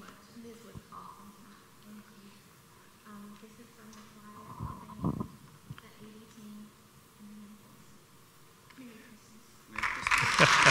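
A man talks at a distance.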